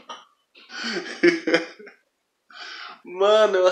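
A young man laughs heartily close by.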